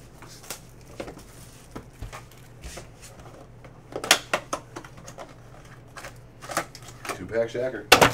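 Plastic wrapping crinkles and tears as hands open a pack.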